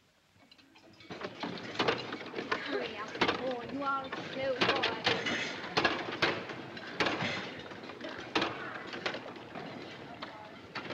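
Machines clatter and rattle busily.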